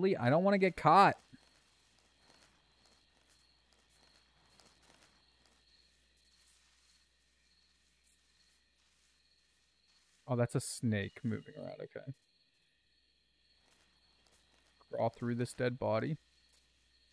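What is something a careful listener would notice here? A young man talks into a close microphone in short bursts, casually.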